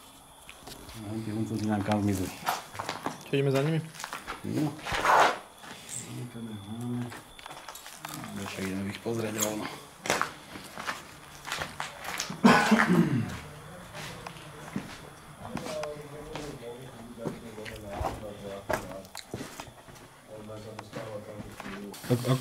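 A middle-aged man talks close by, calmly, in an echoing space.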